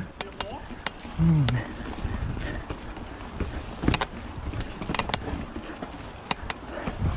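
A bicycle's chain and frame rattle and clatter over bumps.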